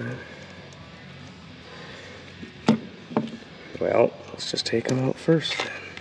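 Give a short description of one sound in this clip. Metal parts clink softly as a hand handles them.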